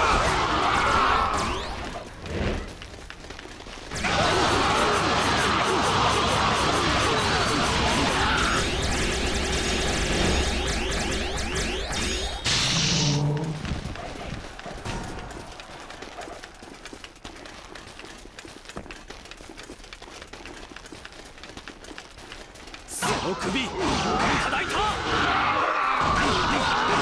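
Swords clash and slash rapidly in a noisy battle.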